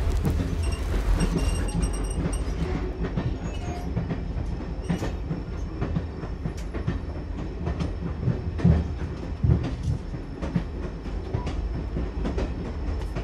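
A steam locomotive chuffs steadily.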